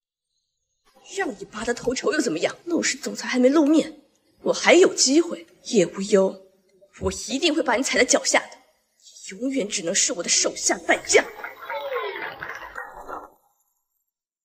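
A young woman speaks with irritation, close by.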